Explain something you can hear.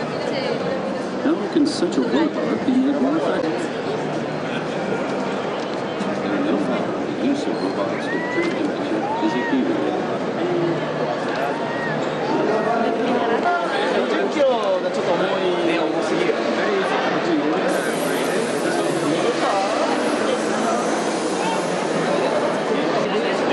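A crowd of adults chatters in a large hall.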